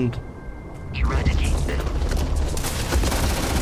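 A gun fires rapidly in bursts.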